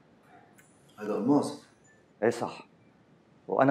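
A second man replies briefly nearby.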